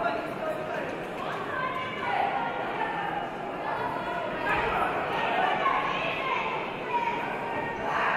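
A crowd cheers and shouts in a large echoing hall.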